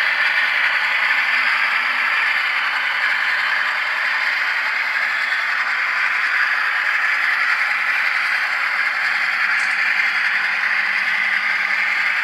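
A model train whirs and rumbles steadily along its track.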